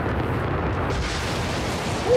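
A blast booms loudly.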